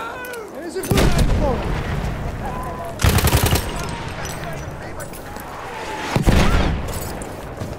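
A heavy machine gun fires short, loud bursts.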